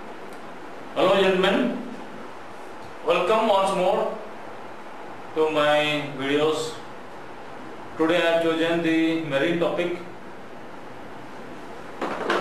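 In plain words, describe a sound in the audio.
A middle-aged man speaks calmly through a clip-on microphone, in short phrases with pauses.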